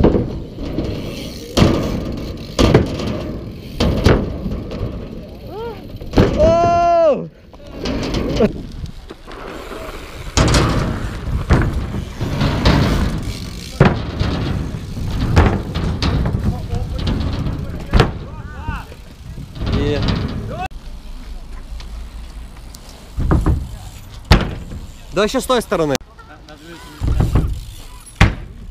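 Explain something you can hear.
Bike tyres roll and rumble on concrete.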